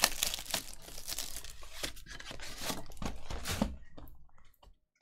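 Plastic wrap crinkles and rustles between hands.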